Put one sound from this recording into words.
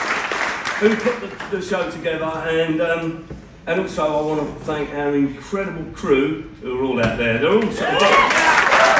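A man speaks to the audience through a microphone.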